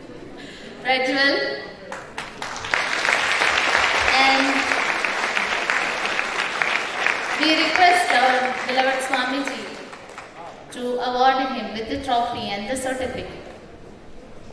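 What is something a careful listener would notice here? A woman speaks through a microphone and loudspeakers in a large hall.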